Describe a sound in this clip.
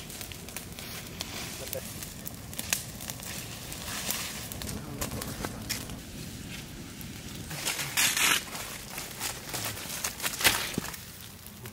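A stick scrapes and pokes through burning embers.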